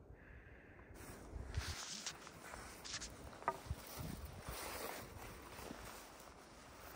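Footsteps crunch on dry grass and loose stones close by.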